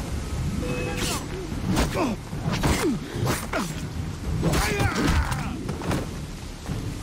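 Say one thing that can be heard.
Swords clash and strike in a short fight.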